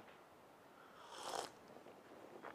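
A man slurps a drink from a cup.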